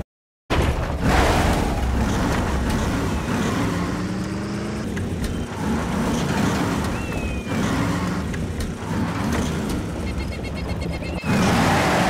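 A small buggy's engine revs and whines as it drives over rough ground.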